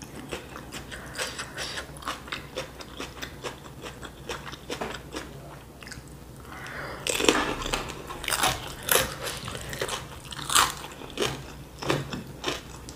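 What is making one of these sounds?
A woman chews food close to a microphone with wet, smacking sounds.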